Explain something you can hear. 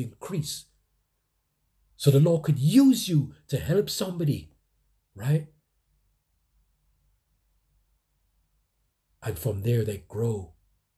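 A man speaks with animation close by, in short bursts with pauses.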